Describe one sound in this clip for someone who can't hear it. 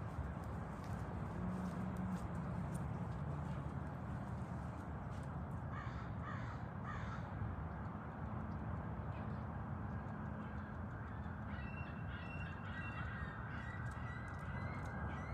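Wind blows steadily across open ground outdoors.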